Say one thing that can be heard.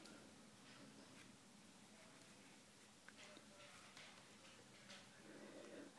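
Fabric rustles as a hand pets a puppy.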